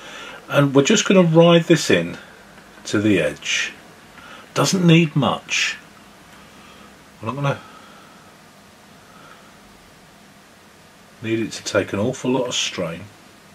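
A small stick rubs softly along the edge of a wooden board.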